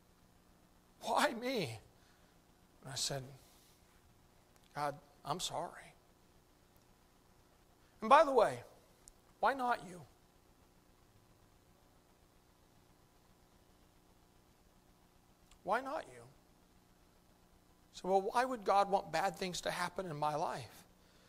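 A middle-aged man speaks slowly through a microphone, with long pauses.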